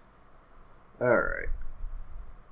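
A young man makes a short voiced exclamation close to a microphone.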